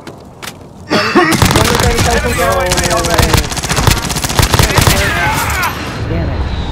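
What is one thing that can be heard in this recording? A gun fires rapid bursts of shots at close range.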